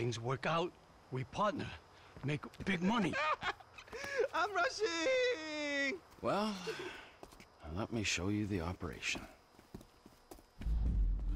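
A second man answers in a gruff voice.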